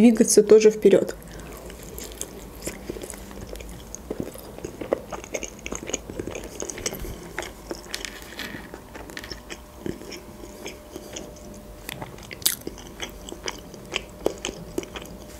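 A young woman crunches and chews crispy food close to a microphone.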